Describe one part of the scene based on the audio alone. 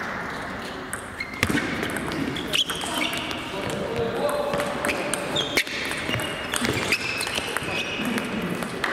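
Sports shoes squeak on the floor.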